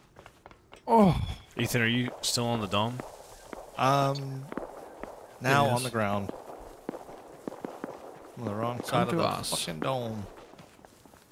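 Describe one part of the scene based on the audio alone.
A man talks with animation into a close microphone.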